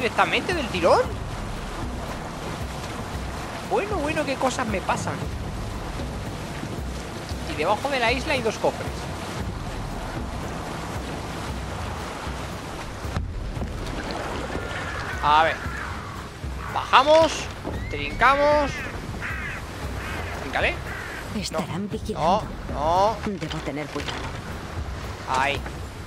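Water splashes gently around a rowing boat.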